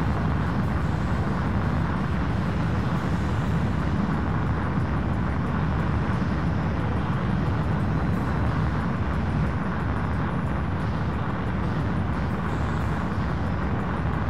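A jet engine roars steadily.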